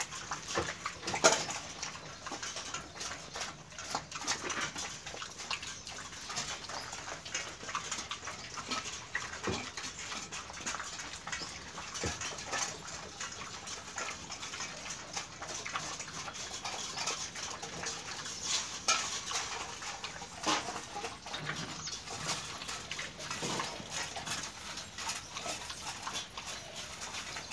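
A dog laps water noisily from a bowl.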